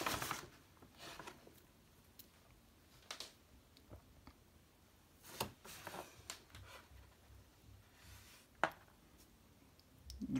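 A metal tin clicks and scrapes softly as hands turn it.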